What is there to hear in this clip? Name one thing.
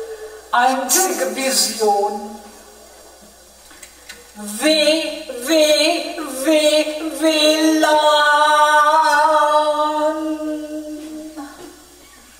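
A woman sings dramatically into a close microphone, holding long notes.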